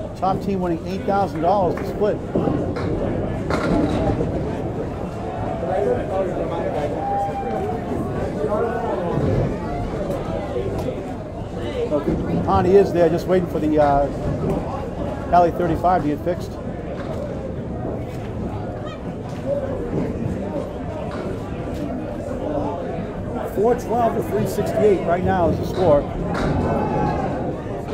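Several men talk and call out in a noisy echoing hall.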